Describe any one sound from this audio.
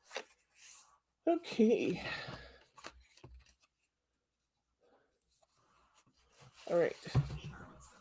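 Paper cards rustle and slide on a table.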